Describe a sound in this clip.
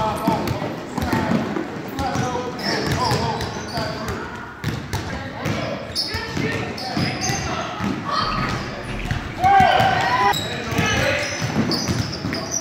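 Children shout and call out in a large echoing gym.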